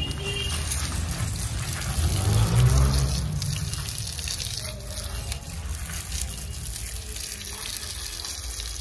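Water sprays from a hose and splashes onto a dog and wet pavement.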